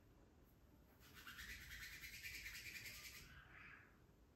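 Cupped hands tap quickly on a head.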